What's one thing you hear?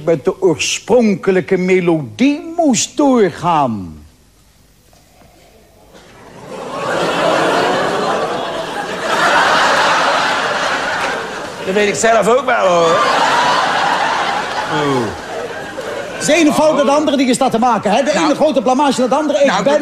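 A man talks animatedly into a nearby microphone.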